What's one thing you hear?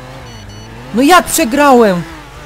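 A car crashes into a tree with a loud bang.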